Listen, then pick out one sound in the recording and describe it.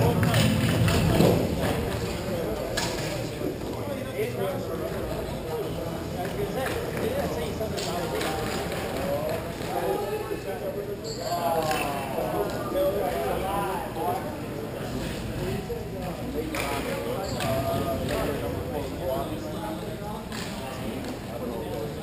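Men call out to each other across a large echoing hall.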